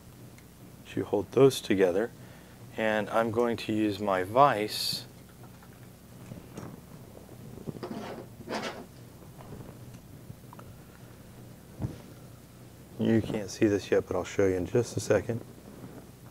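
A man talks calmly and explains, close to a microphone.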